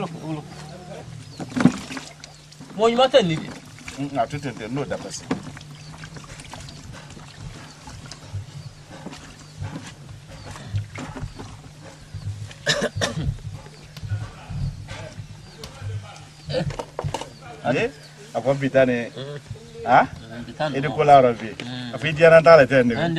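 Two men talk with each other outdoors.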